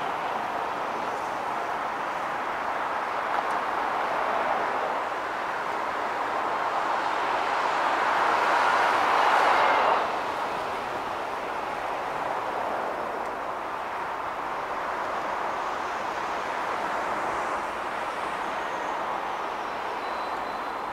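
Steady traffic hums on a city road below.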